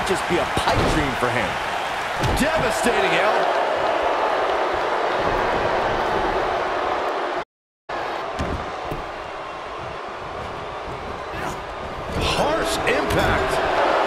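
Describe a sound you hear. Wrestlers' bodies thud heavily onto a ring mat.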